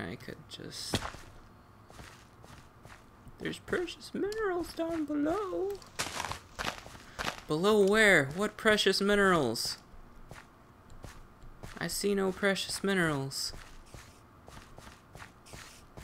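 Footsteps tread on stone and gravel.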